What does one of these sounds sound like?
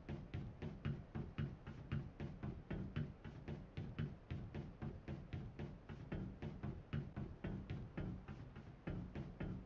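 Quick footsteps clang on a metal walkway.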